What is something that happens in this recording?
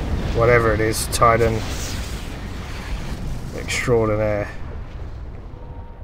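A large explosion booms and rumbles, then fades.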